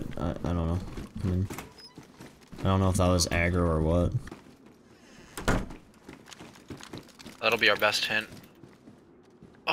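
Footsteps walk over a hard floor.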